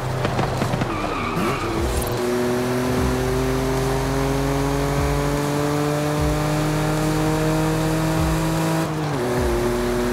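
A car engine drops in pitch as the gear changes.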